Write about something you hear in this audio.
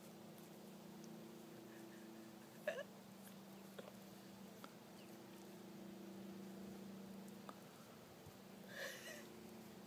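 A deer licks and nibbles from a hand.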